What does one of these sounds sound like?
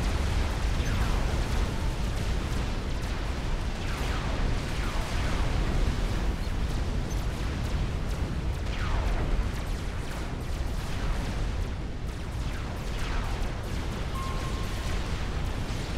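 Laser weapons zap repeatedly.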